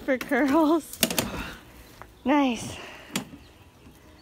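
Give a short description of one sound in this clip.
A lawn mower's handle clicks and clacks as it is handled.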